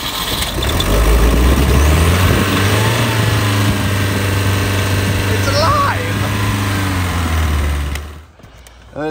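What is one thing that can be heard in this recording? An engine idles with a low, steady rumble.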